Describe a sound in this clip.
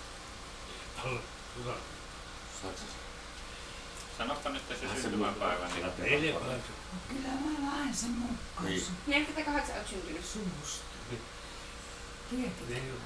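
An elderly man speaks in short replies.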